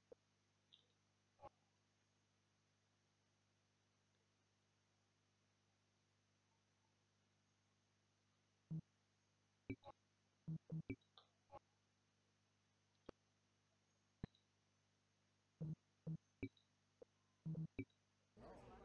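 Short clicks and blips from a game menu sound now and then.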